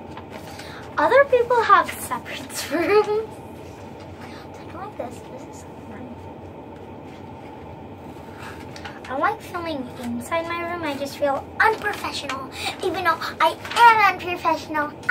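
A young girl speaks close by with animation.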